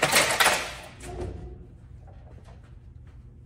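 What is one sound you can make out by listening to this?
A heavy metal door swings open with a clatter.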